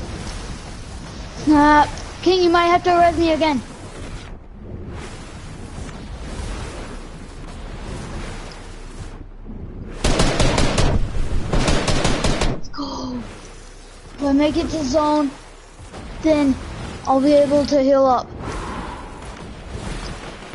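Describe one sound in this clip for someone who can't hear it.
Water splashes as a game character swims.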